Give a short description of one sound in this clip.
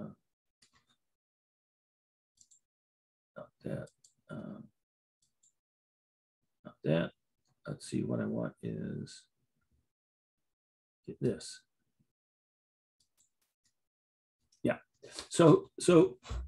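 An elderly man speaks calmly through a microphone, in short bursts with pauses.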